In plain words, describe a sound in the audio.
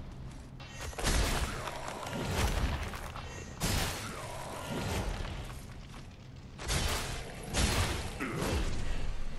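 Heavy weapons clash and strike in a fight.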